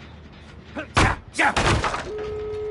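A machine clanks and sputters as it is struck.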